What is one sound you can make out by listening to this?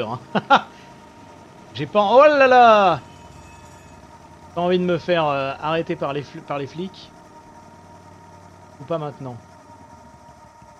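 A small motorbike engine hums steadily.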